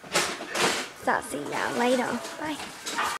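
A teenage girl speaks close by.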